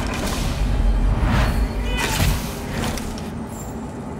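A magic blast crackles and booms loudly.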